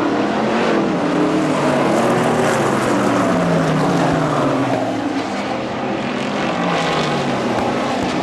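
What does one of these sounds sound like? Race car engines roar loudly around a track outdoors.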